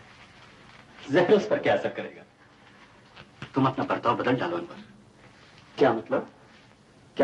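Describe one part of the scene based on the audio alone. A man speaks calmly and seriously nearby.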